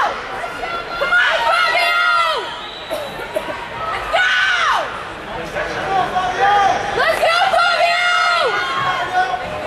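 A crowd of young spectators shouts and cheers in a large echoing hall.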